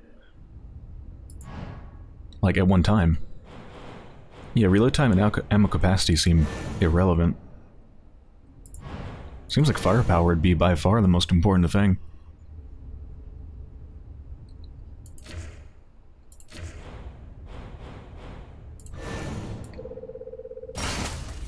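Short menu clicks sound as options are selected.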